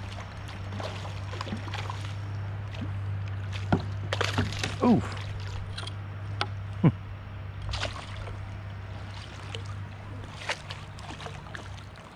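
A hooked fish thrashes and splashes at the water's surface.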